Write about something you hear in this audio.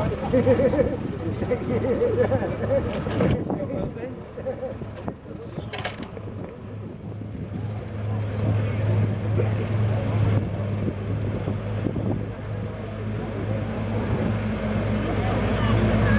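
A tractor engine hums steadily nearby.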